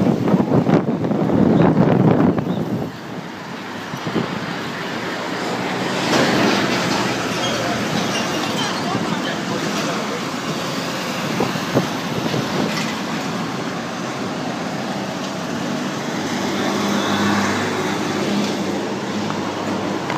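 Traffic rumbles steadily along a busy city street outdoors.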